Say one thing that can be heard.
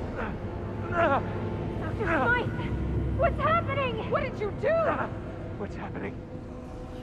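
A woman calls out in alarm.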